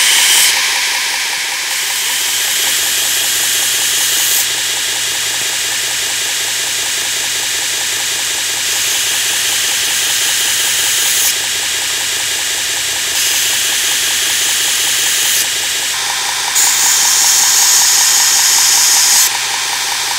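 A belt grinder hums steadily.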